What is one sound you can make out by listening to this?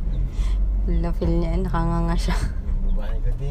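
A baby babbles close by.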